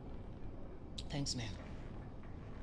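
A woman answers briefly in a quiet voice.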